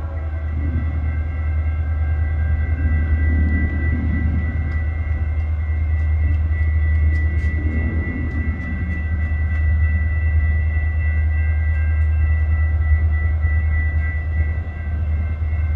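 A diesel freight locomotive rumbles as it approaches.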